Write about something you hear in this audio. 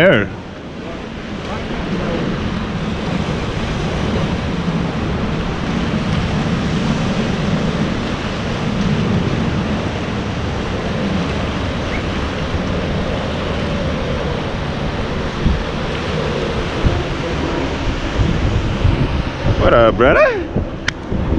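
Sea water washes and splashes against the pier posts below.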